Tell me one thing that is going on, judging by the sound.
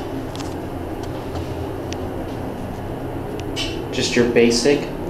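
An elevator car hums low and steadily as it moves.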